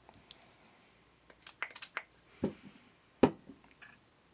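Small plastic parts click and tap.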